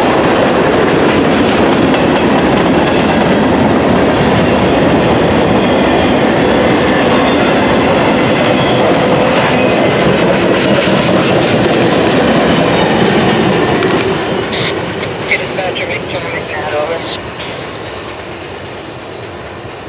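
A freight train rumbles past close by, its wheels clattering on the rails.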